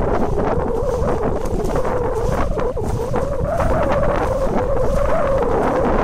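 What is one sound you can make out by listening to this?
Swimmers splash through the sea.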